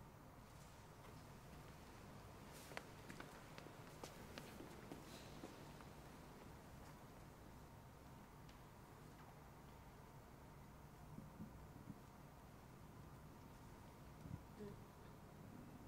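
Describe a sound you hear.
Soft knocks and footsteps echo in a large hall.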